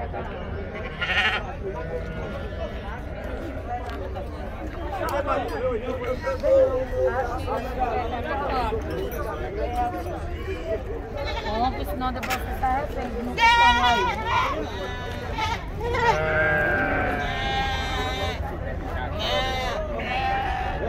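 Goats and sheep bleat close by.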